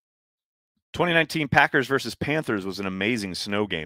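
A middle-aged man speaks calmly and closely into a headset microphone.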